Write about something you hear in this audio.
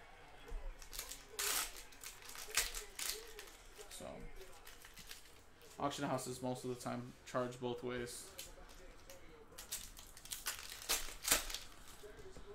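A foil card pack tears open with a crinkling rip.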